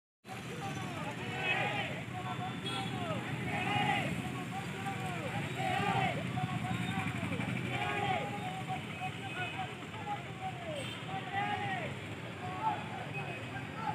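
A crowd of young men chants slogans loudly and rhythmically outdoors.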